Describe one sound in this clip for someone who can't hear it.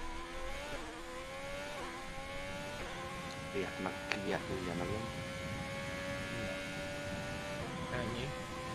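A racing car engine whines at high revs, dropping and rising in pitch as gears change.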